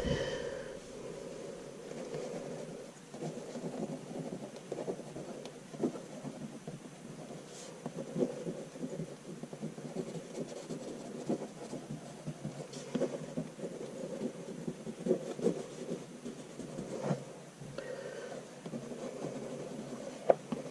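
A pencil scratches and scrapes across paper.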